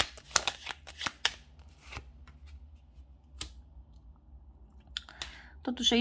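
Playing cards snap and tap softly as they are shuffled and laid down on a table.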